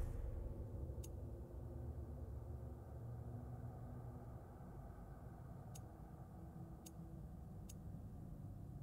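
Soft clicks tick as menu items change.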